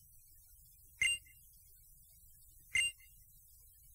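A short electronic beep sounds twice.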